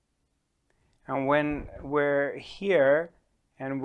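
A man speaks calmly and closely into a microphone.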